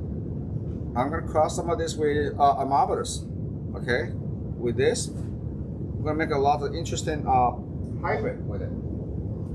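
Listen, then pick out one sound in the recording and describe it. A middle-aged man speaks calmly and clearly into a microphone.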